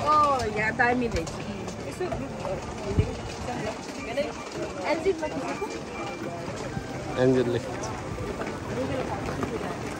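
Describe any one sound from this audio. Young women talk with each other nearby.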